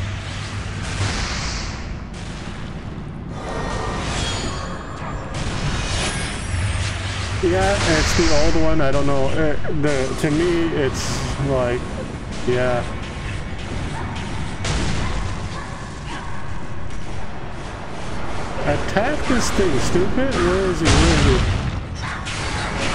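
Fantasy game battle sounds clash and whoosh.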